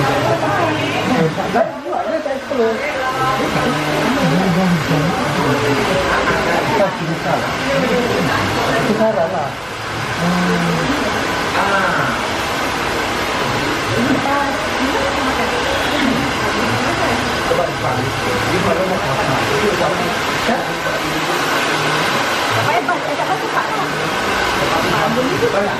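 A middle-aged woman talks, explaining something up close.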